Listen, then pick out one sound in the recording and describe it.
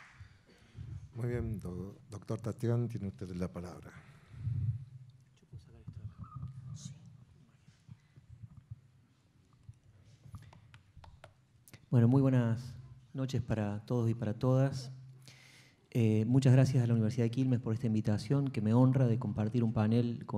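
A man speaks calmly into a microphone in a large hall.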